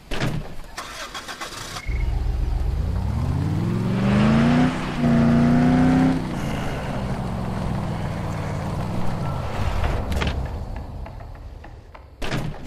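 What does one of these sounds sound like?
Tyres roll over a dirt track.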